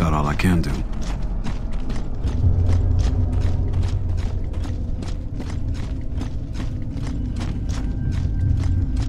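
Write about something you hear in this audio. Heavy armoured footsteps thud quickly and steadily on stone.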